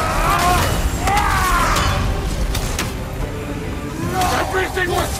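Heavy blows thud and clang in a fight.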